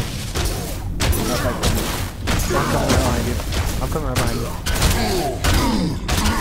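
Heavy blows strike and clang in a fight.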